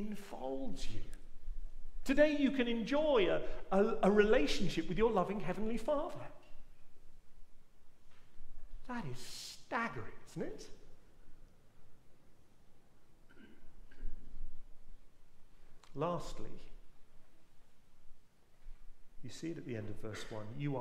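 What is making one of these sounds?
A middle-aged man speaks calmly into a microphone, with pauses, in a room with a slight echo.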